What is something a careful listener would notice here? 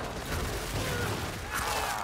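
Flesh splatters wetly.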